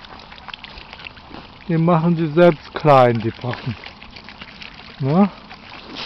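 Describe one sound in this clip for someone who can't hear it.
Swans dabble and splash softly in shallow water.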